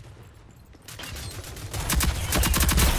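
Gunshots fire in rapid bursts, loud and close.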